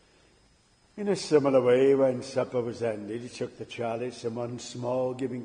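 A man speaks through a microphone in a large echoing room.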